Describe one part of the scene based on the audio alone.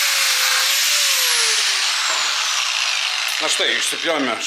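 An angle grinder winds down and its whine falls in pitch.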